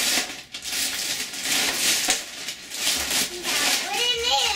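Wrapping paper rustles and tears as a young boy unwraps a present.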